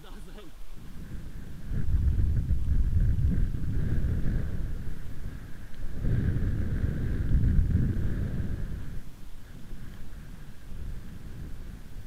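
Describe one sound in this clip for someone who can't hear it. Bicycle tyres crunch over a gravel track.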